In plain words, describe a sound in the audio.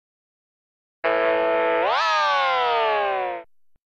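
An electronic organ holds a long note that slides up and then slowly down.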